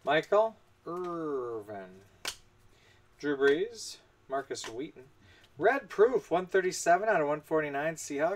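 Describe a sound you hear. Cards slide and tap against each other as hands flip through them.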